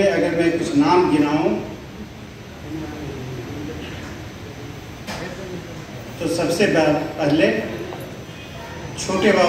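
An elderly man speaks into a microphone over loudspeakers, delivering a speech.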